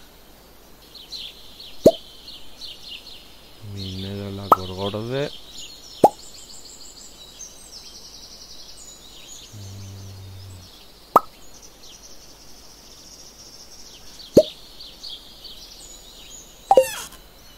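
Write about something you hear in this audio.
Tiny ticking blips chirp quickly while a game cursor moves over items.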